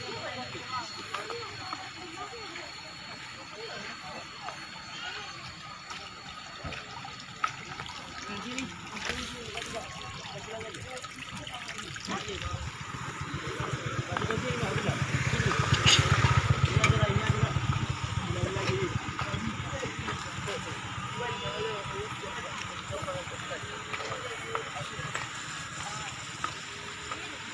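Several men talk to each other nearby outdoors.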